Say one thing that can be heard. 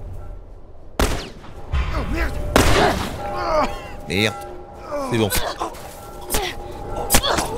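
Gunshots ring out close by.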